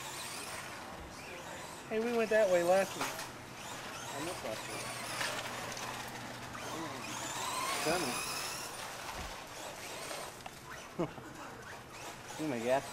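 A small electric motor whines, rising and falling in pitch as a toy car races.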